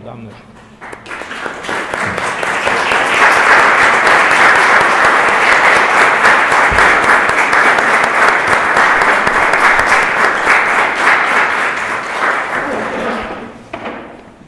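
An audience applauds.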